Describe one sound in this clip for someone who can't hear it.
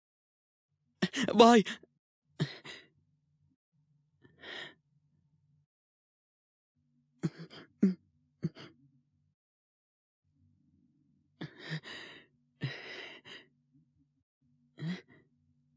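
A young man speaks.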